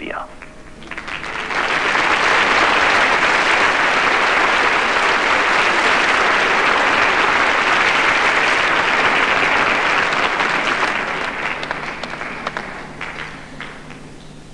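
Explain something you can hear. A large audience applauds loudly in a large hall.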